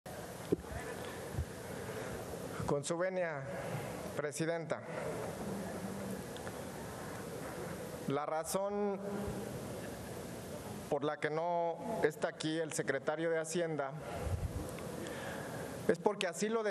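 A low murmur of many voices fills a large hall.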